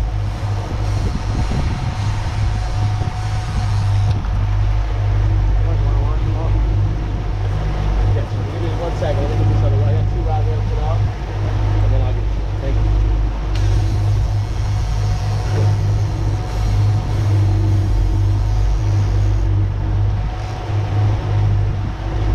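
Outboard engines drone steadily at speed.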